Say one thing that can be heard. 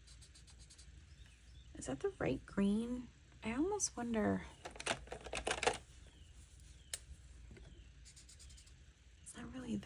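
A marker scratches across paper.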